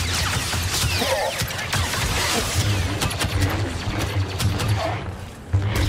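Lightsabers clash and crackle against blaster bolts.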